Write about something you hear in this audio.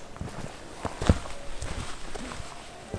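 Footsteps crunch on a dry forest path.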